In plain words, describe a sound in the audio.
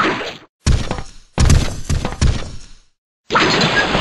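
Heavy blows thud and crash.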